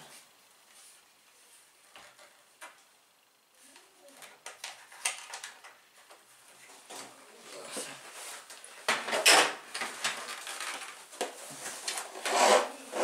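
Plastic parts of a handheld vacuum cleaner click and rattle as they are fitted together.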